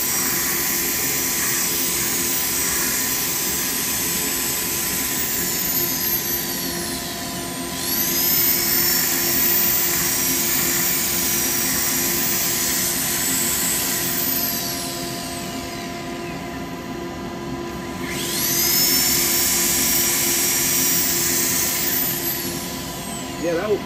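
A small electric grinder whines at high speed, spinning up and winding down.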